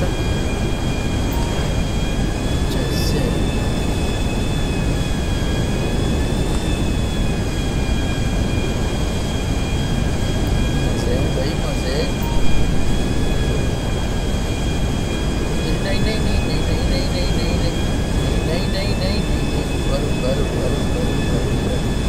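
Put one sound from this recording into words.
A jet engine roars steadily with a high whine.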